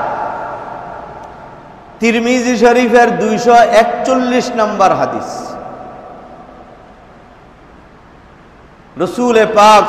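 A man speaks through a microphone with a loud echo, preaching with feeling.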